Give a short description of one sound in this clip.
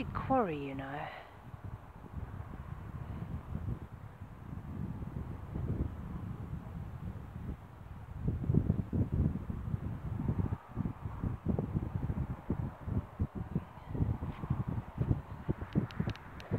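Wind gusts and buffets outdoors, rumbling low and unevenly.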